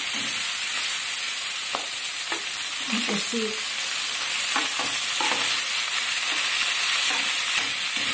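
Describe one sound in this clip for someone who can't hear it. A spatula scrapes food off a plate.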